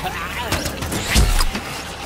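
Laser blasts zap in a video game.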